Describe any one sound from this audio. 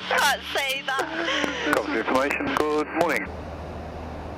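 A young woman talks and laughs cheerfully through a headset intercom.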